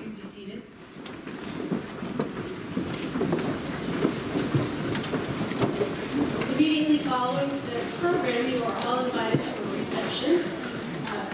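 A large choir sings together in an echoing hall.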